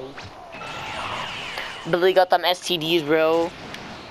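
A video game energy burst whooshes and crackles.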